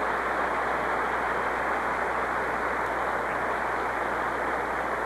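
A large crowd in an arena applauds and cheers.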